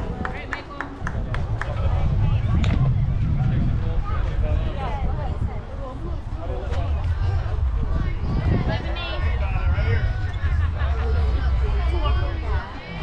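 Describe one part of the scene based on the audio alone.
Wind rumbles across an open field outdoors.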